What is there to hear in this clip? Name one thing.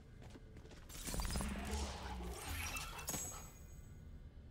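A metal chest whirs and clanks open.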